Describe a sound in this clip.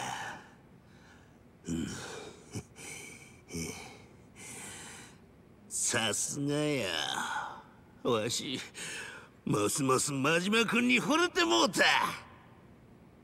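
A man pants and speaks hoarsely, out of breath.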